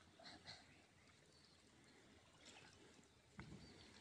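Hands splash softly in shallow muddy water as seedlings are pushed into the mud.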